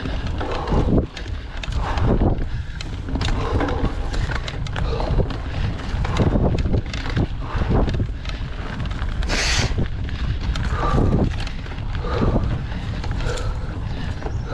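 Dry leaves crackle under bicycle tyres.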